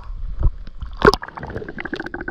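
Water splashes sharply as something plunges in.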